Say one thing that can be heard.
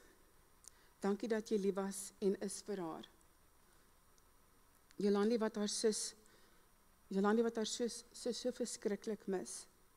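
A woman speaks into a microphone over loudspeakers in an echoing hall.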